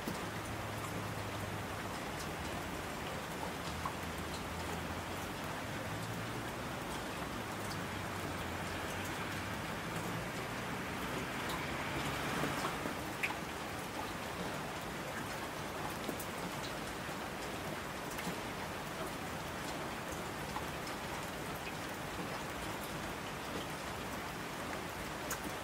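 Streams of water rush down a slope.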